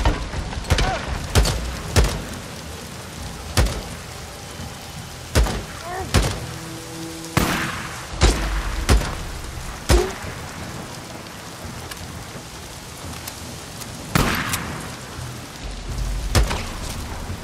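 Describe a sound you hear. A rifle fires single loud shots.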